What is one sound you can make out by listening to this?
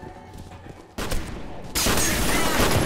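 A pane of glass shatters under gunfire.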